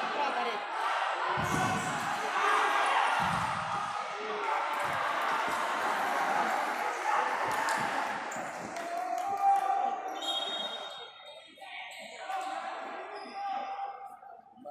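A crowd of spectators chatters and cheers in a large echoing hall.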